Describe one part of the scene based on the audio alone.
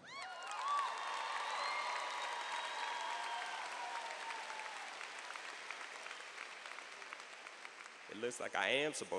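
A large crowd cheers and whistles in a big echoing hall, slowly dying down.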